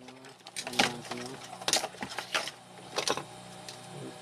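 Metal casings knock and clatter on a workbench as they are handled.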